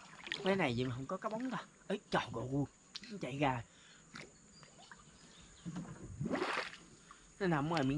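Water splashes gently around a swimmer.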